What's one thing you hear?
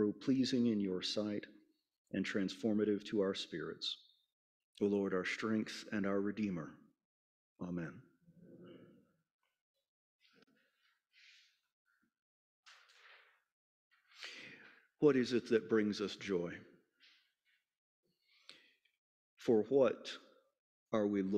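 A man speaks calmly and clearly into a microphone, with pauses.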